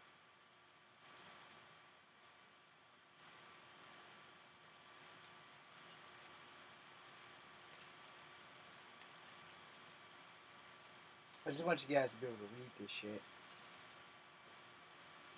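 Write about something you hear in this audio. Metal chains clink and rattle in a man's hands.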